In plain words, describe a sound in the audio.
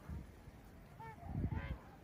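Geese call faintly across the water.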